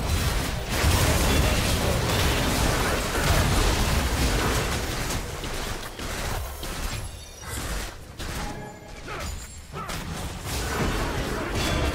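Spell effects and blasts crackle and boom in a fierce battle.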